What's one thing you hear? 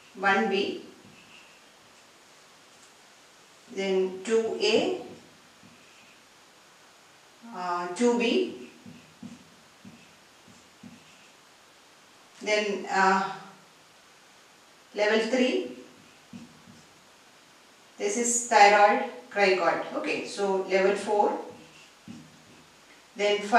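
A woman speaks calmly in short phrases, close by.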